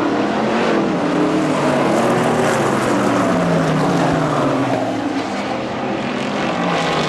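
Race car engines rise and fall in pitch as cars speed past.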